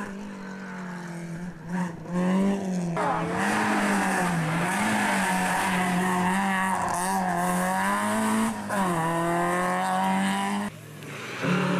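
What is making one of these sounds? A rally car engine revs hard and roars past.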